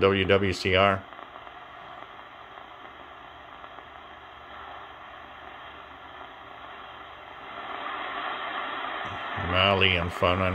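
Radio static hisses steadily between voices.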